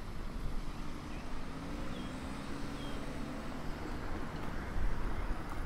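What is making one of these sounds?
A car drives slowly past on the street.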